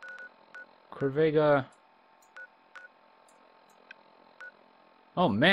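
A device gives short electronic clicks as a dial turns.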